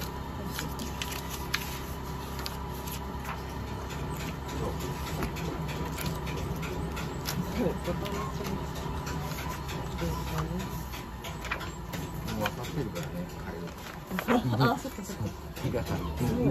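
Sheets of paper rustle and crinkle as they are handled and turned over.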